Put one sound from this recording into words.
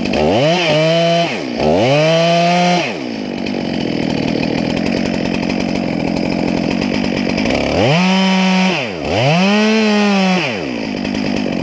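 A chainsaw cuts into a tree trunk.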